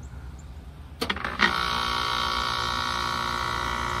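An outdoor air conditioner starts up with a sudden click and then hums and whirs steadily.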